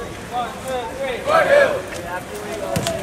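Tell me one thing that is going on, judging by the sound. A group of young men shouts a loud cheer together.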